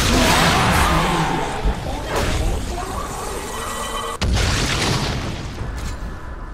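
Magic blasts and fighting effects crackle loudly in a game.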